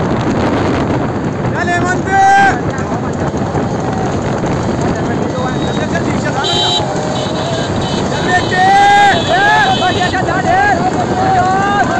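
Cart wheels rattle over a dirt road.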